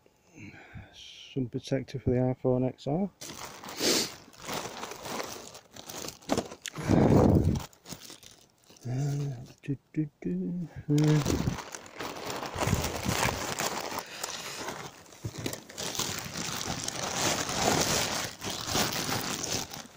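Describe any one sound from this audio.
Plastic bags crinkle and rustle as they are rummaged through.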